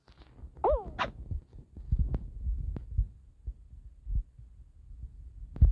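Playful cartoon game sound effects boing and pop.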